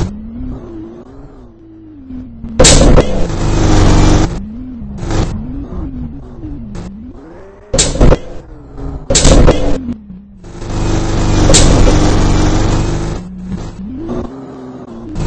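A bus engine revs, rising and falling in pitch.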